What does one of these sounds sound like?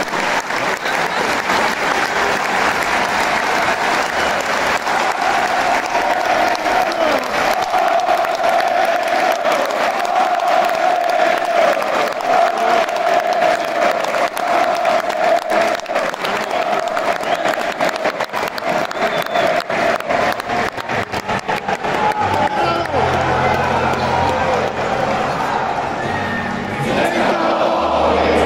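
A large crowd sings loudly together in a big echoing arena.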